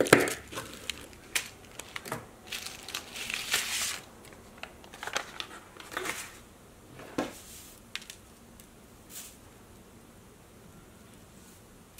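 Paper and fabric pieces rustle as they are handled.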